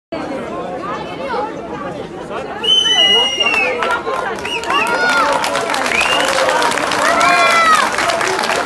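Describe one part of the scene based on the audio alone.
A crowd of men and women chatters and calls out close by.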